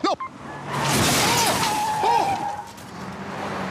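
A man exclaims loudly in surprise.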